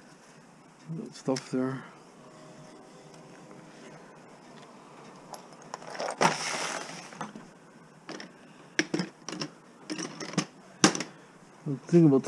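Metal tools clink and rattle as a hand rummages through them.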